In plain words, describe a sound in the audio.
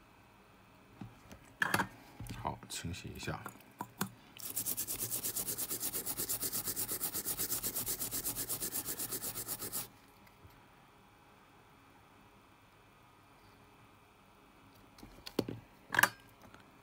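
A circuit board knocks and rustles against paper tissue.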